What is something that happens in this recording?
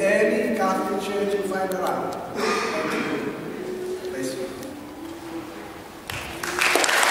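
A man speaks calmly nearby in an echoing hall.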